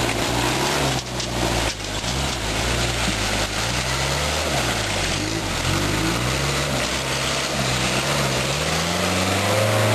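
Tyres splash and churn through mud.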